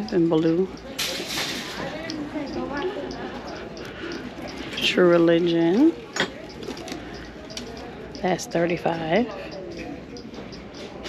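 A handbag rustles as it is handled.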